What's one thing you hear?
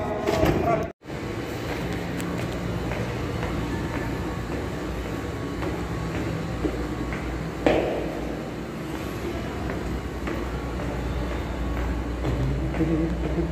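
Footsteps tap down concrete stairs, echoing in a hard stairwell.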